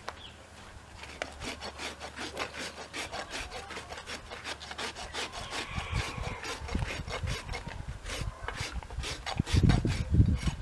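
A rasp scrapes a horse's hoof in quick, rough strokes.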